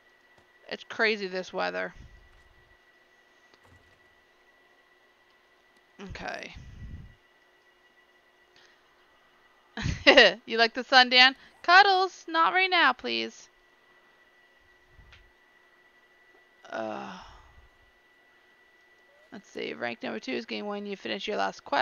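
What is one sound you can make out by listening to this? A woman talks casually into a close microphone, in short bursts with pauses.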